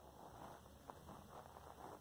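Footsteps crunch on gravel close by.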